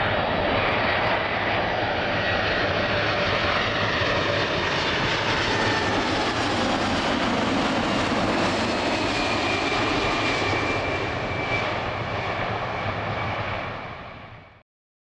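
A jet airliner roars loudly as it takes off and climbs away.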